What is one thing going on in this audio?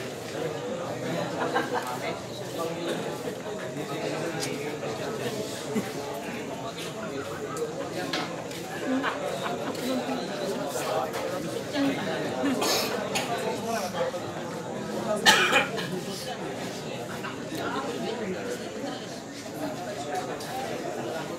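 A crowd murmurs and chatters around a room.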